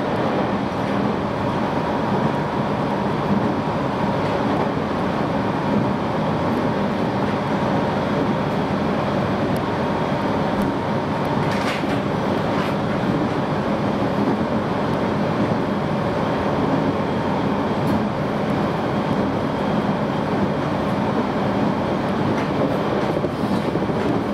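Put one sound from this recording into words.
An electric train rumbles along the rails at speed, heard from inside the carriage.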